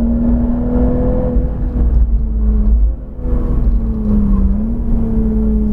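A car engine roars at high revs from inside the cabin, its pitch dipping as the car slows.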